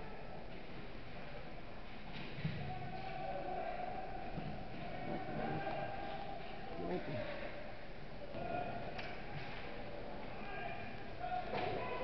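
Skates scrape across ice in a large echoing rink.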